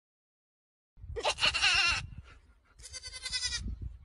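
A goat bleats close by.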